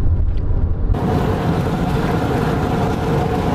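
Wind rushes past outside a moving car.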